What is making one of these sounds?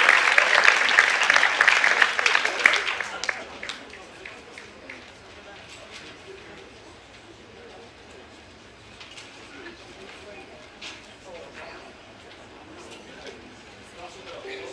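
A man speaks to the group, heard faintly from a distance.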